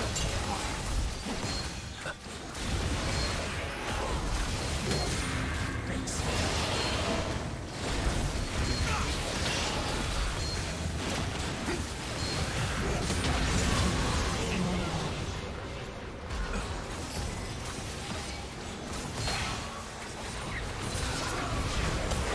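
Spell effects crackle and burst during a fight.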